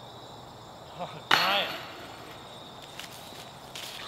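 A disc hits the metal chains of a disc golf basket.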